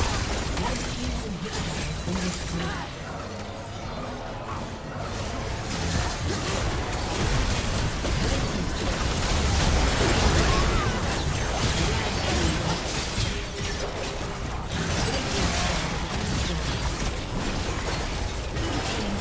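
Game spell effects crackle and explode in a fast-paced battle.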